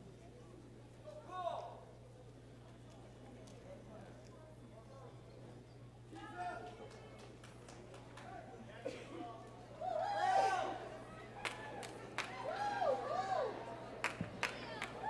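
A man speaks into a microphone, heard over loudspeakers in an echoing hall.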